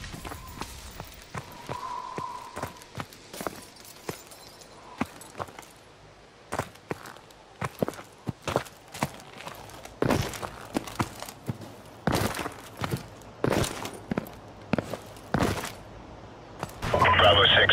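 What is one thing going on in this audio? Footsteps crunch and thud at a steady walking pace.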